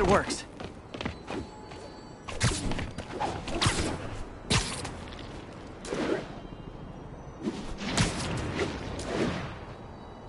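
Wind rushes past in loud whooshing gusts.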